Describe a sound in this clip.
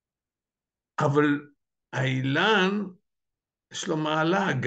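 An elderly man speaks with animation into a microphone, close by.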